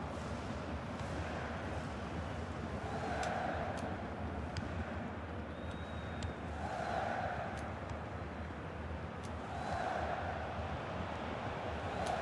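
A football is kicked with short, dull thumps.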